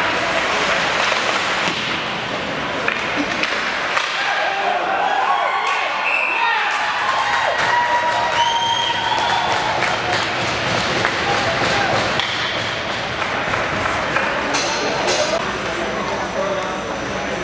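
A crowd murmurs and calls out in a large echoing arena.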